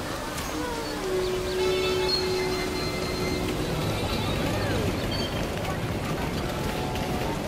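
A child's footsteps patter quickly on pavement.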